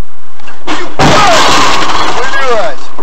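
A car crashes into another car with a loud crunch.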